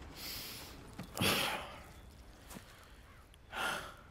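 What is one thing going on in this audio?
A man sits down heavily on a wooden barrel.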